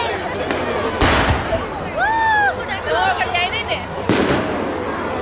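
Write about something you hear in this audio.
A firework bursts with a loud boom.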